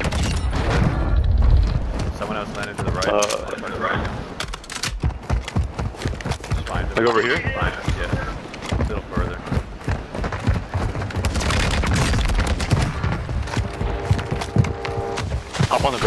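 Footsteps crunch quickly over ground.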